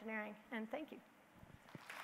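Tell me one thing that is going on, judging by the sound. A woman speaks briefly into a microphone.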